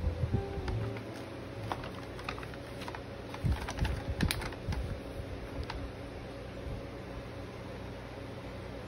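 A paper towel crinkles as it dabs a surface.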